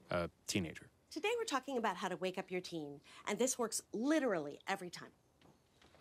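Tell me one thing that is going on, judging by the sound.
A middle-aged woman speaks with animation close by.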